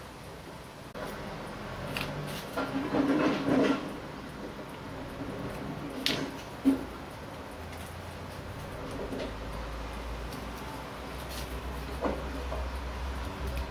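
Small metal parts click as a watch crown is fitted and turned.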